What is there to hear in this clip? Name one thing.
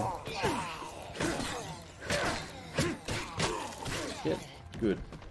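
Heavy blows thud repeatedly in a scuffle.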